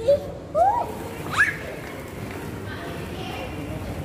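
Plastic balls rustle and clatter as a child lands in a ball pit.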